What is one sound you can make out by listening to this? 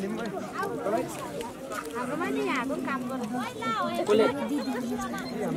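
Young children chatter and call out nearby, outdoors.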